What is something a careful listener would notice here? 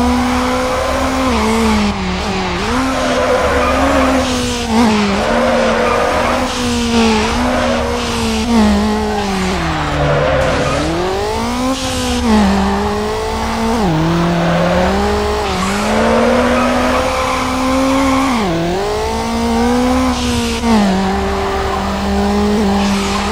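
A car engine revs high and drops as gears shift.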